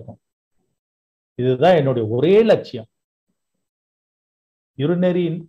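A middle-aged man speaks with animation over an online call, with pauses.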